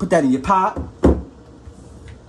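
A plastic tub is set down on a counter with a light knock.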